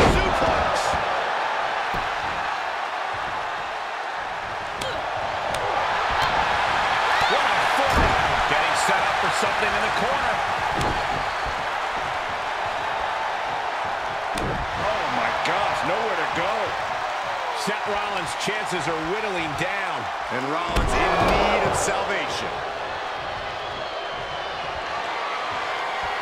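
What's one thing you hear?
A large crowd cheers steadily in a big echoing arena.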